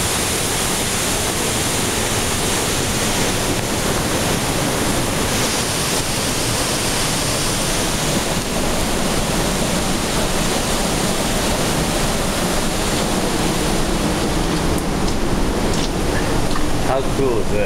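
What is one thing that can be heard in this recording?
A waterfall roars and splashes steadily close by.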